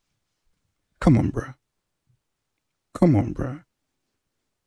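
A man speaks into a microphone, close by.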